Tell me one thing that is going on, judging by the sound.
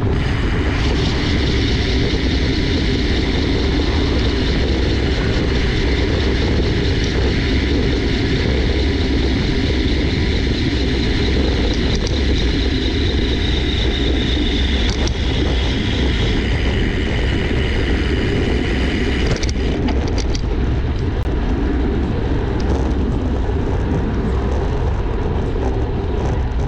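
Wind roars loudly past a moving bicycle.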